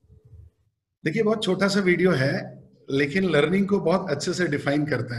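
A man talks cheerfully over an online call.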